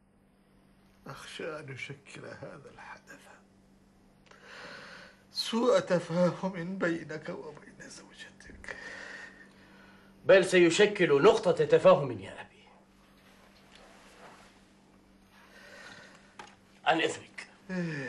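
An elderly man speaks weakly and slowly.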